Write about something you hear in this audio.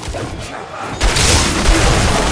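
Magic blasts crackle and burst during a fight.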